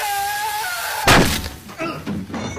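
A metal pan strikes a man's head with a loud bang.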